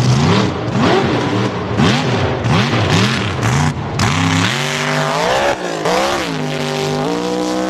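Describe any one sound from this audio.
Mud splatters and sprays from spinning tyres.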